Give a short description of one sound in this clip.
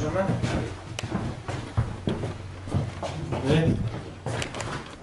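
A door handle clicks and rattles as a door opens.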